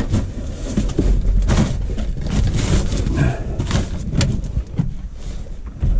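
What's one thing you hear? Newspaper crackles and rustles as it is pressed down.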